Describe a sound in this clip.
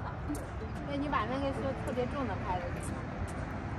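A young woman talks nearby.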